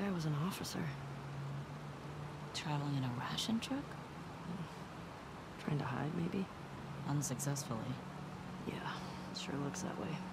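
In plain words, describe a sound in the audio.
A second young woman speaks calmly, close by.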